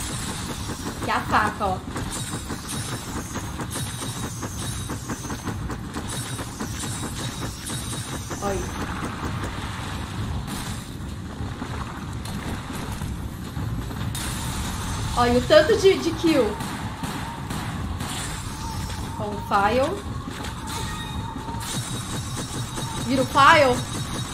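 A young woman talks through a microphone.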